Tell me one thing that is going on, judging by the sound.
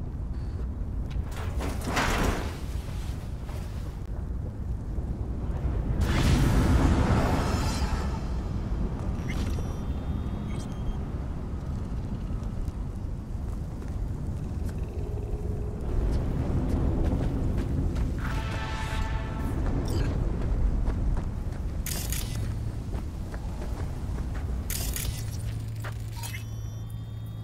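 A low wind rumbles steadily outdoors.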